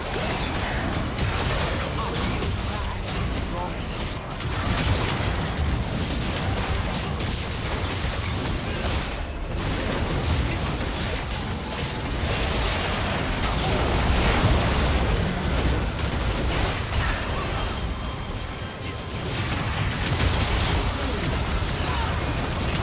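Video game spell effects whoosh, crackle and burst in a fast battle.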